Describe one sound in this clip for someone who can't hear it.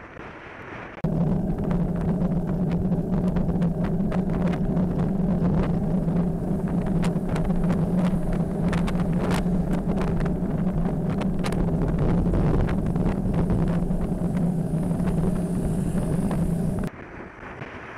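A motorcycle engine drones steadily close by.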